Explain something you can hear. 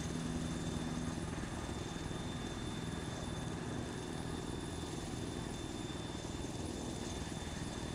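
A helicopter's engine whines steadily.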